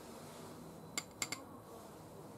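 A metal sieve is tapped lightly, giving a few soft metallic clicks.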